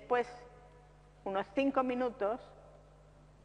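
An elderly woman speaks calmly into a close microphone.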